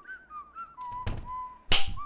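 A soda spray bursts out with a short hiss.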